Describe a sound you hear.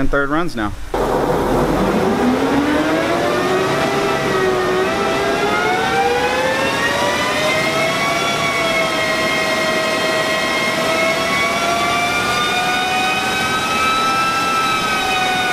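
A Subaru flat-four engine revs up under load on a chassis dynamometer.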